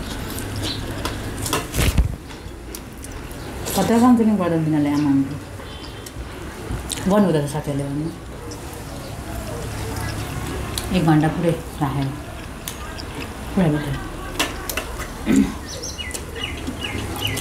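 Hands scrape and tap food on metal plates.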